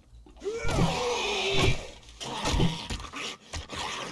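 A wooden club thuds against a zombie.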